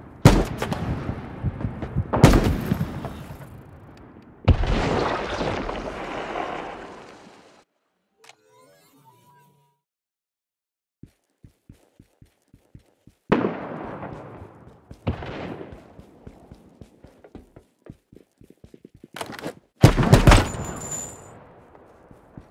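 Rifle shots crack loudly and echo away.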